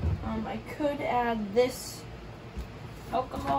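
A plastic jug is grabbed and set down with a dull knock.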